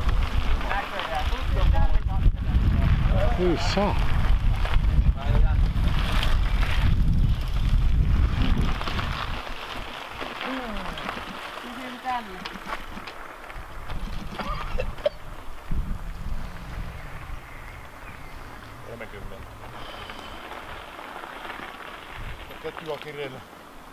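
A man talks outdoors at a distance.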